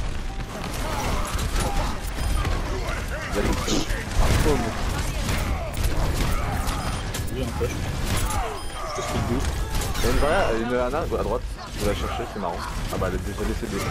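A heavy gun fires in rapid, booming bursts.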